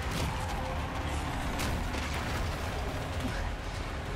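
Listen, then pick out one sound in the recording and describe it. A truck engine rumbles as it approaches.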